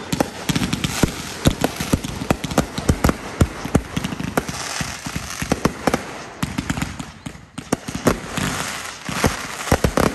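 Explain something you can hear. Fireworks bang and pop in rapid bursts outdoors.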